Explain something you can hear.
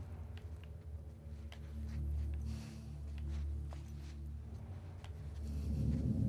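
Footsteps shuffle softly on a dirt path.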